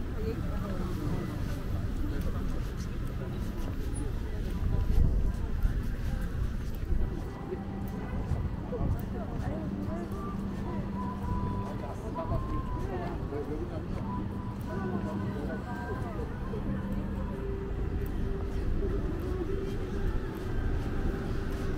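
Footsteps tap on pavement nearby.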